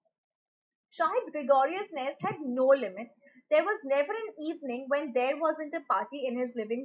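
A young woman speaks calmly and clearly into a microphone, explaining.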